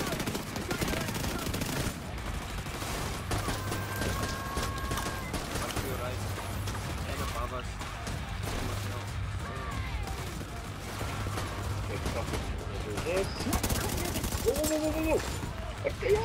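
Gunshots fire in bursts.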